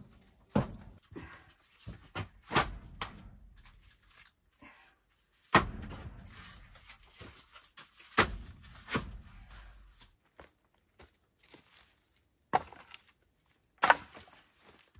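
Split firewood logs knock and clunk as they are stacked.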